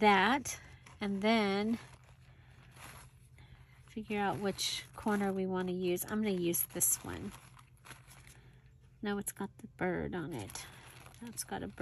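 Thin paper rustles and crinkles as it is folded.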